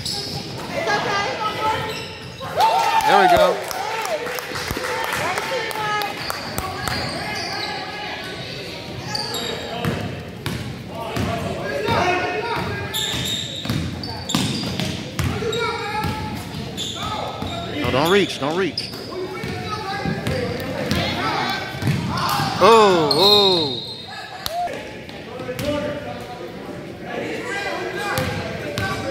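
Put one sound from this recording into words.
Spectators, men and women, shout and talk across the gym.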